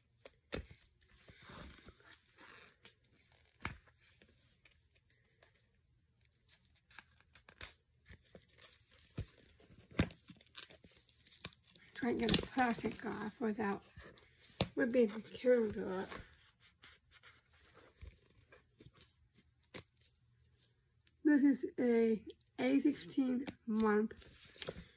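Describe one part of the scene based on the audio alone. Cardboard packaging crinkles and rustles in hands.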